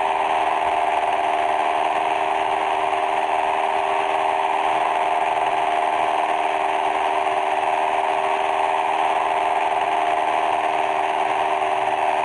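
The propeller engine of a small single-engine plane drones in flight.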